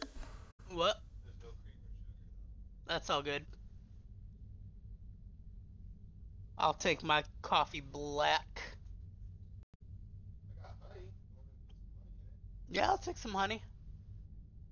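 A man speaks in short bursts into a close microphone.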